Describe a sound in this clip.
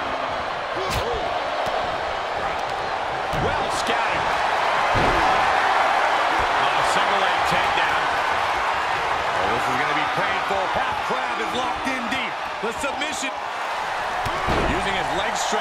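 Heavy thuds of bodies slam onto a ring mat.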